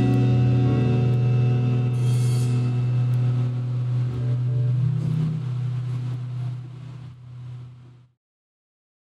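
A bass guitar holds a low note that rings out and fades.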